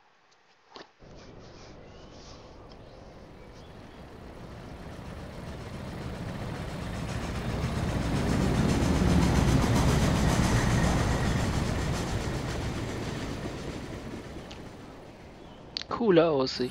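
Wind rushes loudly past a flying airship, swelling and then fading.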